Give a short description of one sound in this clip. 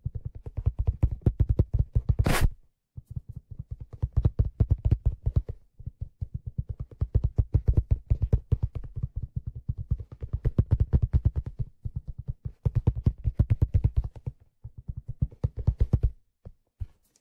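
Fingers tap rapidly on a plastic object close to a microphone.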